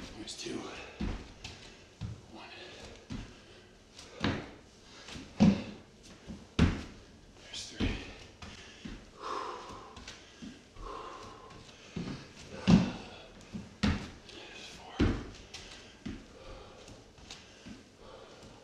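Feet thump and land on a wooden floor in irregular bursts.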